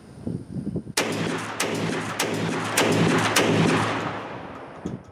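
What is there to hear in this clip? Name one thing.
A shotgun fires with a loud boom that echoes across open ground.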